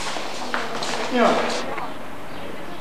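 Children's feet stamp on a floor as they dance.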